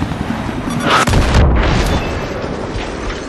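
A missile explodes with a loud, deep blast.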